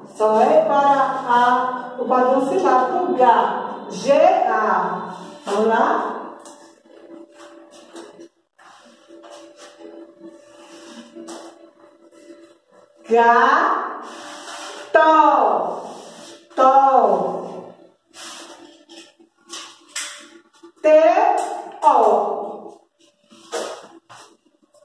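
A woman speaks clearly and slowly, as if teaching, close by.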